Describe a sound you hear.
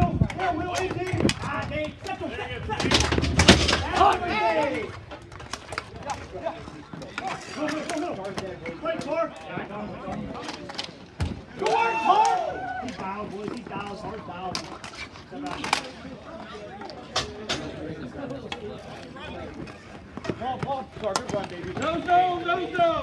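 Nearby men shout and cheer loudly outdoors.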